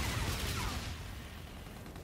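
An explosion bursts in a video game.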